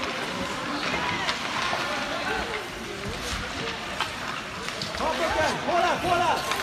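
Children shout to each other across the ice.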